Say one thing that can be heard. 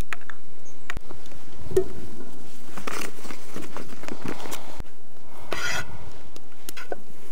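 Butter sizzles in a hot pan.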